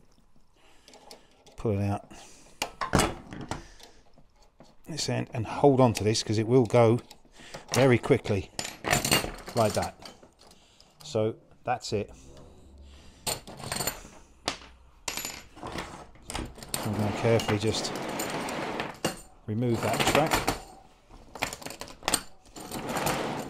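Metal track links clink and rattle as they are handled.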